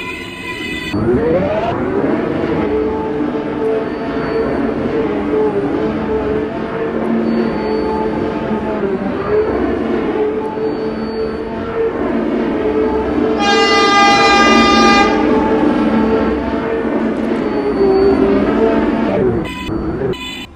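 An electric subway train's motors whine as it accelerates along the track.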